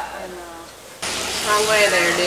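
A sheep bleats close by.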